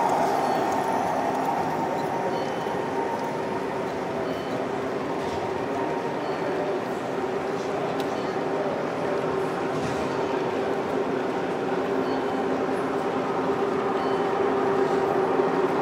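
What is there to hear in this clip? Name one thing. A garden-scale model train rolls along metal track.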